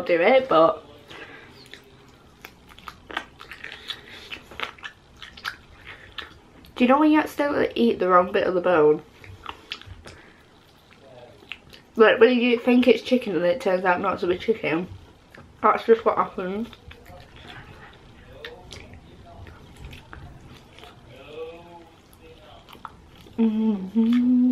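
A young woman chews and munches on crunchy food with wet mouth sounds.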